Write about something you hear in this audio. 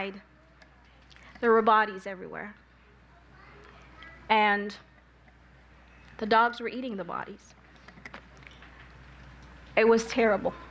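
A young woman speaks calmly into a microphone in a large room, with pauses between phrases.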